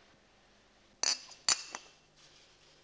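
Glasses clink on a tray.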